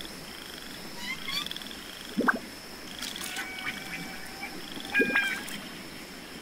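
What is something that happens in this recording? Bright chimes ring out in short rising notes.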